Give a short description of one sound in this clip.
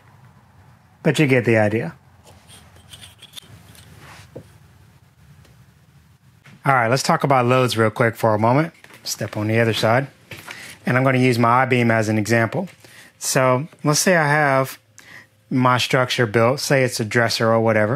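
A man talks calmly and clearly close by.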